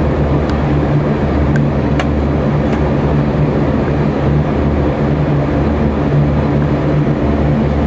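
A propeller engine drones loudly and steadily close by.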